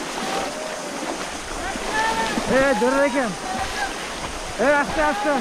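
A man splashes and sloshes by hand in muddy shallow water.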